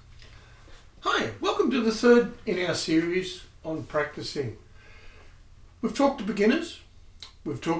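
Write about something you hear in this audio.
A middle-aged man talks calmly and clearly, close by.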